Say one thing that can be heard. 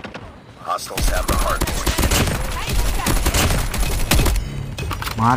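Rapid gunfire rattles loudly in quick bursts.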